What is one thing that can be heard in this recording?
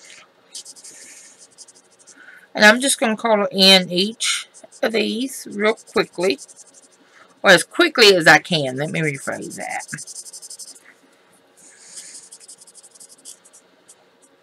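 A marker squeaks and scratches across paper in short strokes.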